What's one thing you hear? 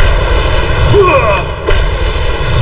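A burst of crackling impacts bursts out loudly.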